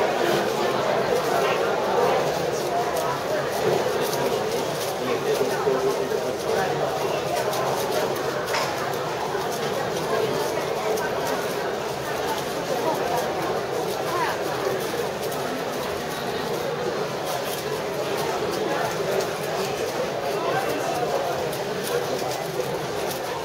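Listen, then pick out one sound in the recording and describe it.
A crowd of young people murmur and chatter in an echoing hall.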